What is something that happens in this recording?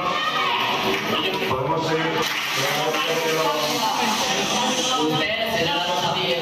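A large crowd of young people sings together in an echoing hall.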